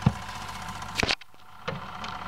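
A tonearm drops onto a spinning record with a soft thump.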